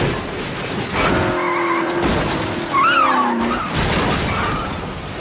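Tyres screech as a car spins.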